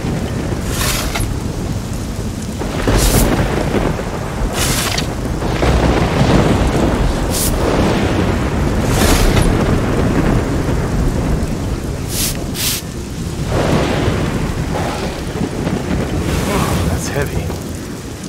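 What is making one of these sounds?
A shovel digs into loose dirt with repeated scraping thuds.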